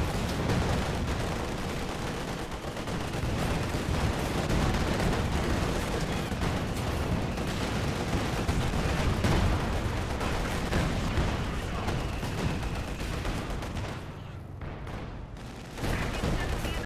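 Explosions rumble and crash nearby.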